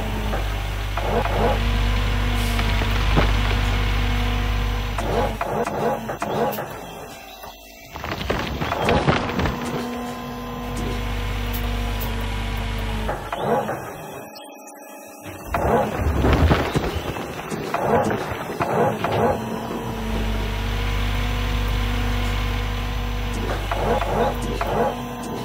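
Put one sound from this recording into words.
A heavy diesel engine hums and strains steadily.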